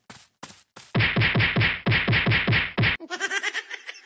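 A cartoonish explosion bursts from a tablet's speaker.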